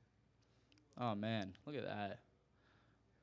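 A young man speaks briefly into a microphone.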